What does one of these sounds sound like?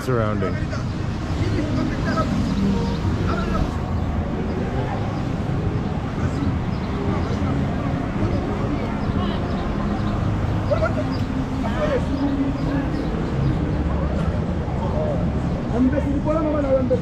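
Footsteps of people walking pass on paving.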